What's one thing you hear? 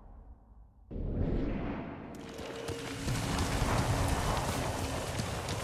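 Horse hooves clop slowly on a dirt path.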